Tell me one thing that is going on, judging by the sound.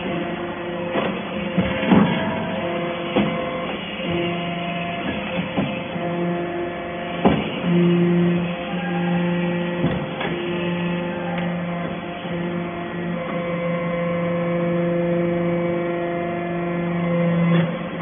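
Metal knocks and clanks now and then.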